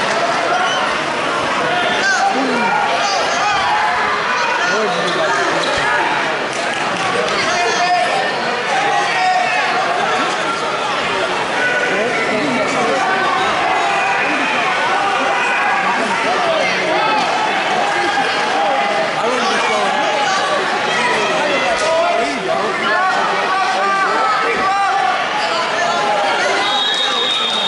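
A crowd of spectators chatters and calls out throughout, echoing in a large hall.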